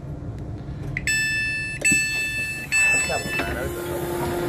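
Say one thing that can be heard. A door chime beeps in short repeated tones.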